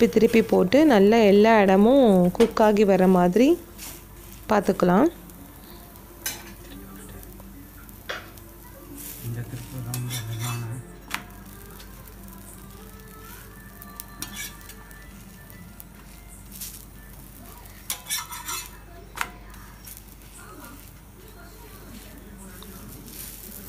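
A metal spatula scrapes and taps against a pan.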